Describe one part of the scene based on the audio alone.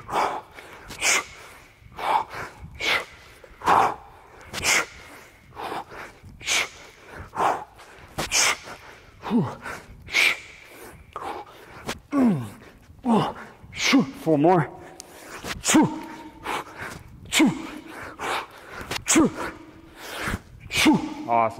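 A heavy weight swishes through the air in repeated, rhythmic swings.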